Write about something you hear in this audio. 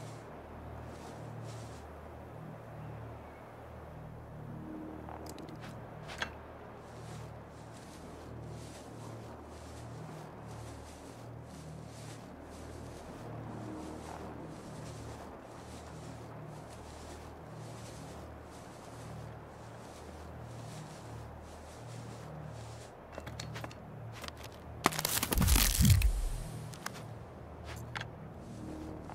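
Footsteps rustle steadily through grass and brush.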